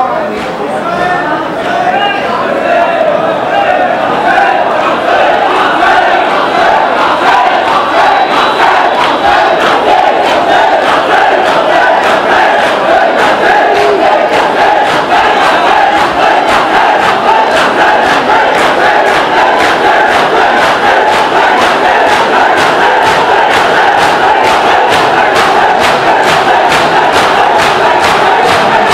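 Many hands beat on chests in a steady, fast rhythm.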